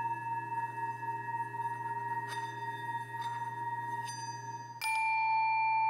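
A singing bowl hums with a steady, ringing tone.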